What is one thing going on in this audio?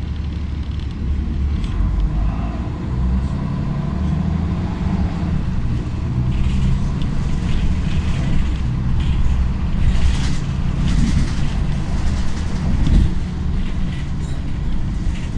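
A bus engine grows louder as the bus speeds up.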